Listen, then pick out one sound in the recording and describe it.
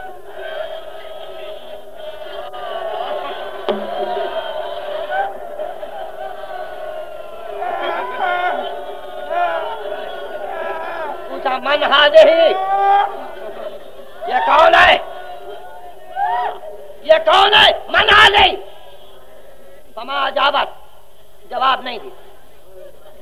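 An elderly man recites with feeling, heard through an old, hissy recording.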